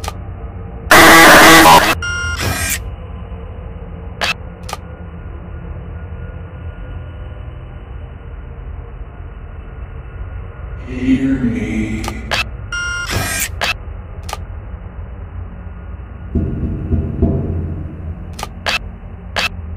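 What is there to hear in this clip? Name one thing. Electronic static hisses in short bursts.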